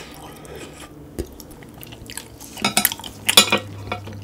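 Wooden chopsticks clatter down onto a plate.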